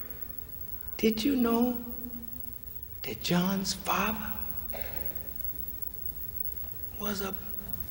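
A man speaks slowly and forcefully into a microphone, with pauses, in a large echoing hall.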